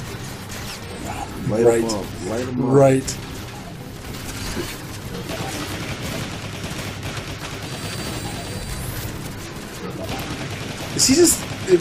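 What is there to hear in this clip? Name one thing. Energy weapons fire in rapid blasts.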